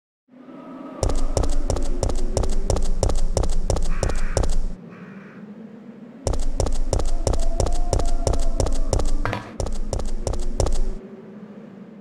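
Quick footsteps run across hard ground.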